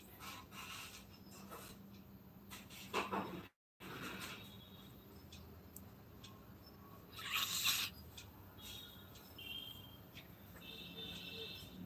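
A woman talks softly close by.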